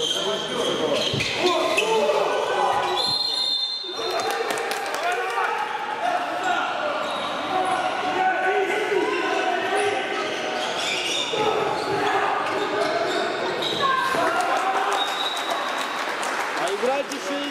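A handball bounces on a hard court floor.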